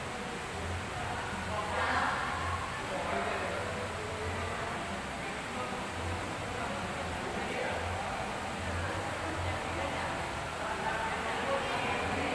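Men talk quietly in a large echoing hall.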